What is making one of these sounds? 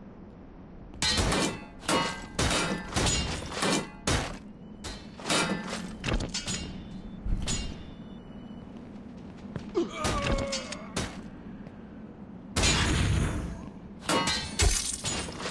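Metal swords clash and clang against shields.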